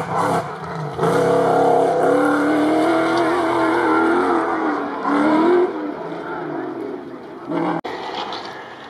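A rally 4x4 engine roars as the car accelerates hard along a dirt track.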